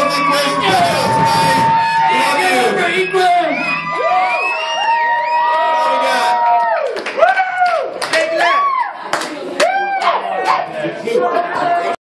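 A live rock band plays loudly through speakers.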